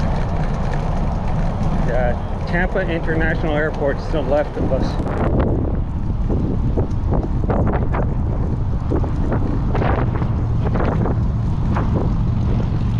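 Tyres roll steadily over pavement.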